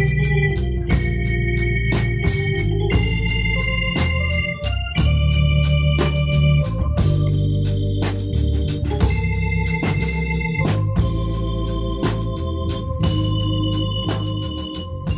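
An electric bass plays a low line.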